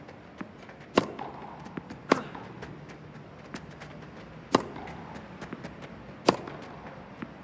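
A tennis ball is struck sharply back and forth.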